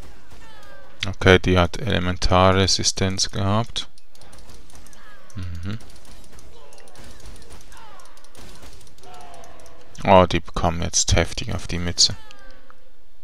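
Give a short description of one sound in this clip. Magic blasts whoosh and crackle during a fight in a video game.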